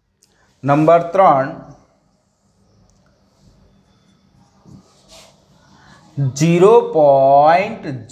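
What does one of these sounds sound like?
A man speaks loudly and steadily, nearby.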